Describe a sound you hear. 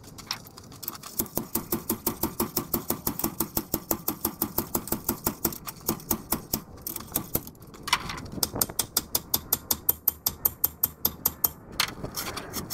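A hand ratchet clicks rapidly and steadily, stopping and starting.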